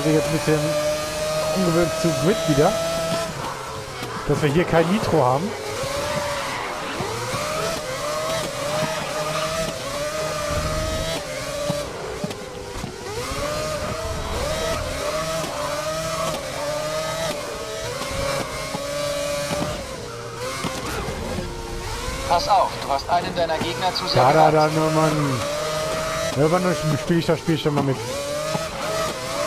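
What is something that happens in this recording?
A racing car engine screams and revs up and down through gear changes.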